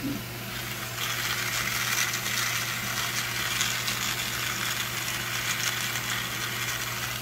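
An electric pepper grinder whirs and grinds peppercorns.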